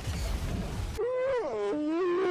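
A young man sings loudly into a microphone, his voice wavering up and down.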